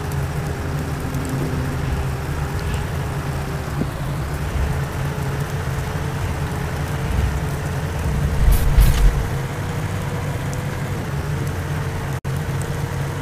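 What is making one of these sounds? A bus engine hums steadily as it drives along a road.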